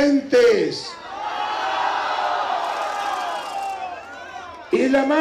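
A crowd cheers and shouts together.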